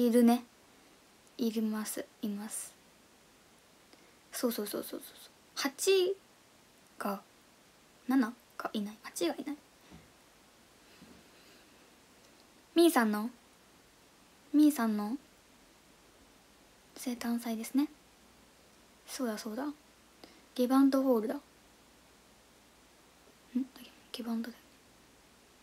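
A young woman speaks softly and calmly in short bursts, close to a microphone.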